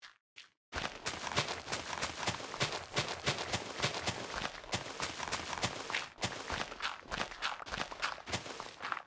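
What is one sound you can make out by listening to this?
Digging crunches through dirt with quick, repeated thuds.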